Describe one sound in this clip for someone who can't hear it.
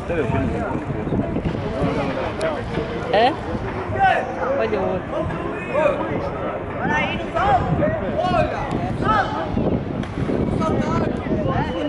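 A crowd of people chatters and calls out nearby.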